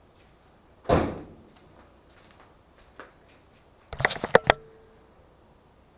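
Footsteps in flip-flops slap on a concrete floor.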